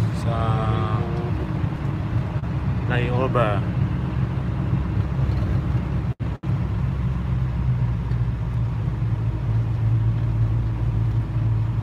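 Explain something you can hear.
Tyres rumble on a highway.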